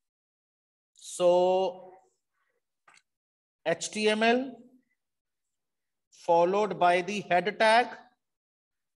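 A man speaks calmly over an online call, in short phrases.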